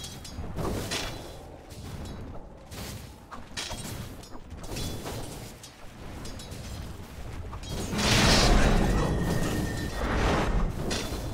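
Weapons clash and strike repeatedly in a game battle.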